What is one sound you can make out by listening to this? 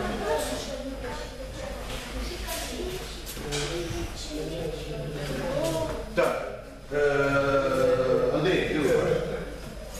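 A man speaks loudly nearby in an echoing hall.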